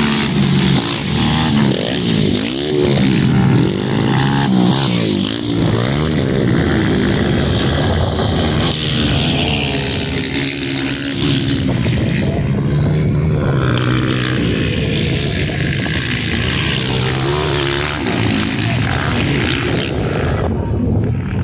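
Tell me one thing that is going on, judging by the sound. A dirt bike engine revs and whines nearby, rising and falling in pitch.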